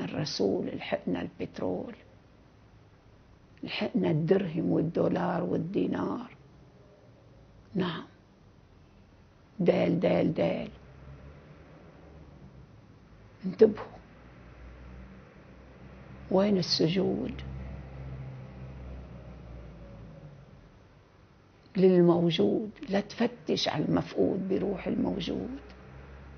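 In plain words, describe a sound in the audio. An elderly woman speaks calmly and expressively, close by, with pauses.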